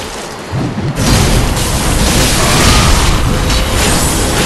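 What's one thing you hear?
A burst of fiery magic explodes with a roar.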